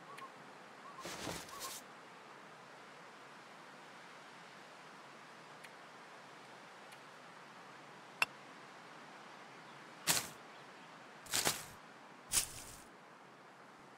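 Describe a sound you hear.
Short rustling and clicking menu sounds play now and then.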